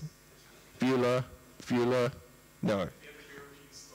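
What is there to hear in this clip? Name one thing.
A man speaks loudly with long drawn-out words into a microphone in an echoing hall.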